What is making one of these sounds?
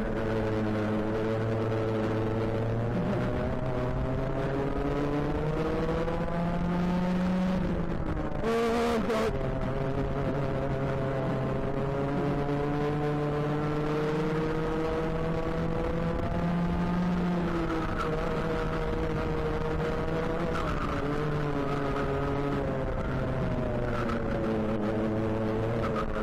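A kart engine drones loudly close by, its pitch rising and falling with the throttle.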